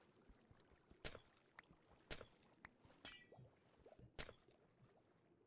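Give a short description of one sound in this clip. Blocks crack and break under quick pickaxe blows.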